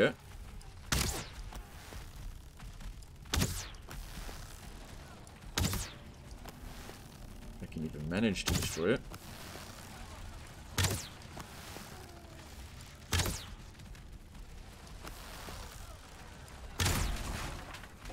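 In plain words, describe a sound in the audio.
A tool chops into wood with sharp, repeated thuds.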